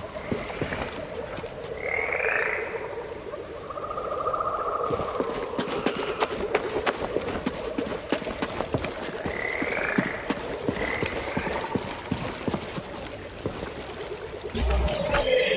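Footsteps crunch over rock at a steady pace.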